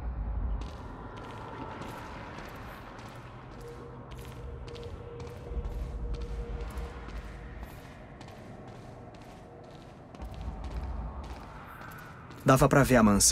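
Footsteps tread steadily on concrete steps.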